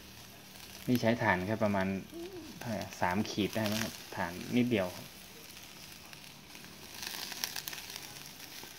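Charcoal crackles softly beneath meat sizzling on a grill.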